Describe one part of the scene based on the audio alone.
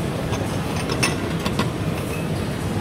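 A metal lid clanks against a pot.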